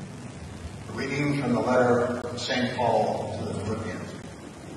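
An older man speaks calmly into a microphone in an echoing room.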